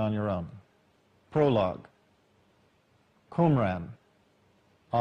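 A middle-aged man speaks calmly in short phrases into a close microphone.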